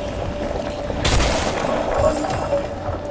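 Wooden planks crash and splinter.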